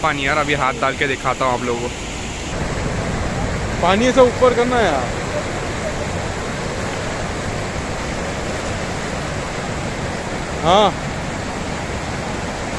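River rapids rush and roar steadily outdoors.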